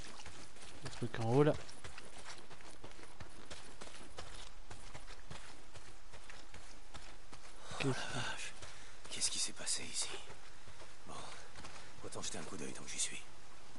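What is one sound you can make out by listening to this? A young man speaks calmly into a headset microphone.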